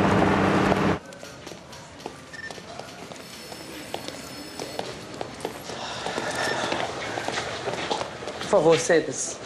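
People murmur and move about in a room.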